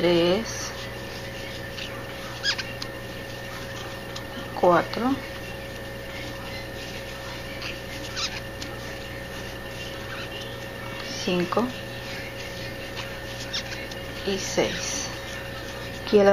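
A crochet hook softly pulls yarn through stitches.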